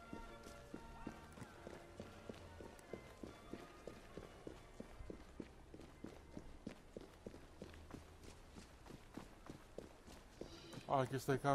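Footsteps tap quickly on cobblestones.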